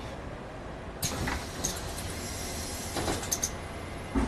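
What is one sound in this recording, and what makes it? Bus doors open with a sharp hiss of air.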